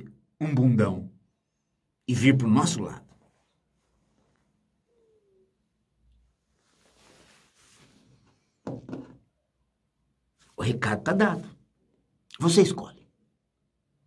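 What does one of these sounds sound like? A middle-aged man speaks slowly and calmly, close to a microphone, in a quiet, dead-sounding room.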